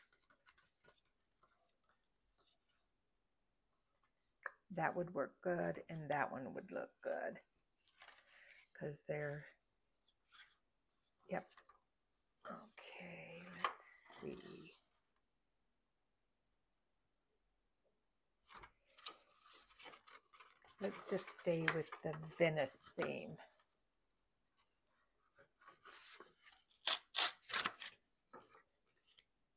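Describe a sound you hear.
Stiff paper cards rustle and flap as they are handled.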